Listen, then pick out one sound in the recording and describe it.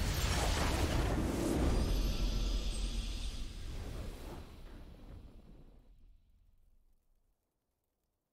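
A triumphant game victory fanfare plays loudly and slowly fades away.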